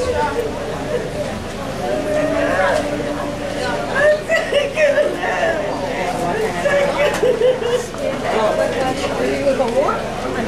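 Voices sing a slow, mournful song nearby.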